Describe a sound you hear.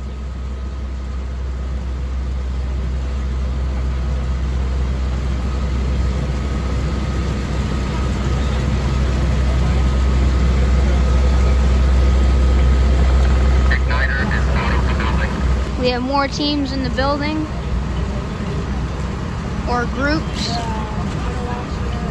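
A fire engine's motor rumbles steadily nearby.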